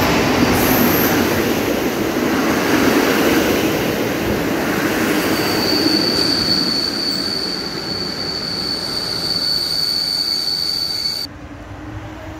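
A passenger train rushes past close by, rumbling and rattling loudly.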